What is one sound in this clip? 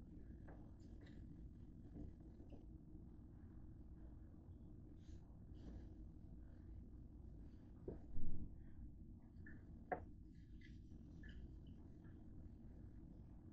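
A paper towel rubs softly over a grill plate.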